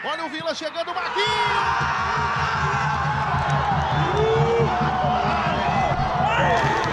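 A man shouts and cheers loudly close by.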